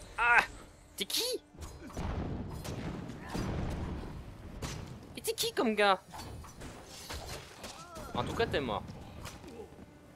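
Blows strike and thud in a fight.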